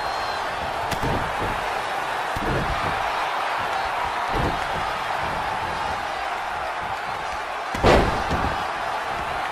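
Heavy bodies slam onto a wrestling ring mat with deep thuds.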